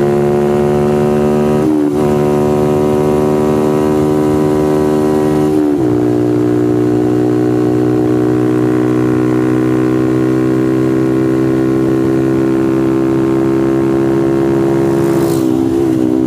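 A motorcycle engine screams at high revs, shifting up through the gears.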